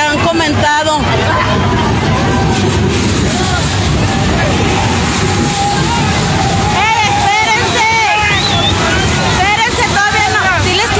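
A crowd of women and men talks and calls out outdoors.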